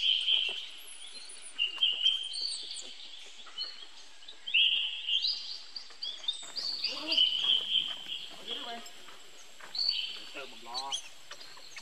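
A baby monkey squeals in high, shrill bursts close by.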